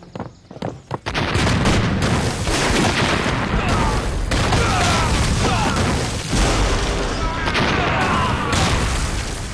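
Explosions roar and rumble loudly.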